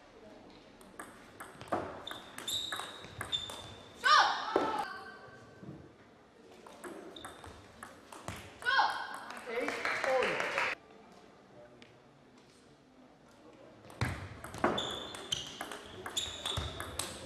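A table tennis ball clicks back and forth off paddles and the table.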